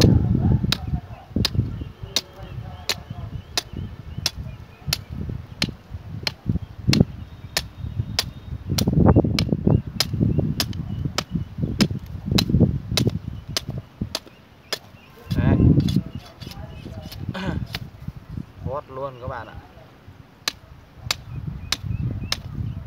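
A knife scrapes and shaves a bamboo stick.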